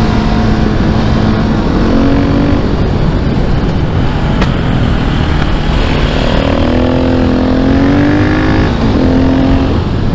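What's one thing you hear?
A single-cylinder supermoto engine accelerates and shifts up through the gears.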